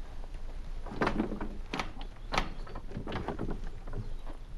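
Wooden poles knock and creak as they are shifted.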